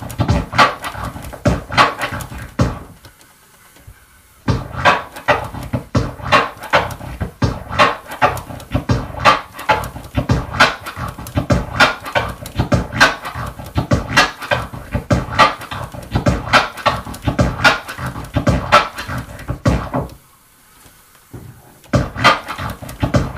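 Music with a punchy, thumping beat plays from a record on a turntable.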